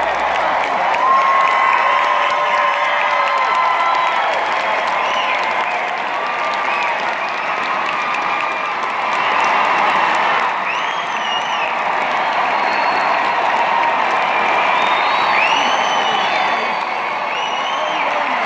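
Members of a large crowd whistle shrilly.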